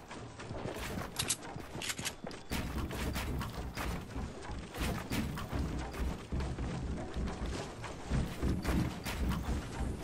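Wooden walls and ramps snap into place with quick knocks, over and over.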